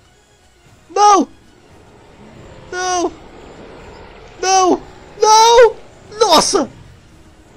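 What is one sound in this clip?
A dinosaur calls out in short, pitched squawks again and again.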